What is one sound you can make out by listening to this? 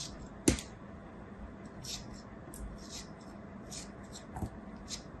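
A blade slices through soft, crumbly dough with light scraping sounds.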